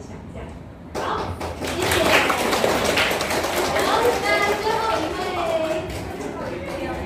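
A small audience claps.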